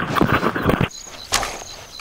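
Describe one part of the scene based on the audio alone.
An eggshell cracks and crunches between a crocodile's teeth.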